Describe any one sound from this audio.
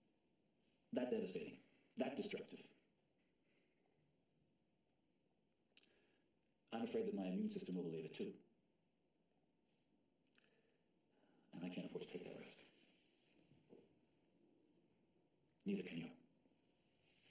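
A middle-aged man speaks in short, halting bursts.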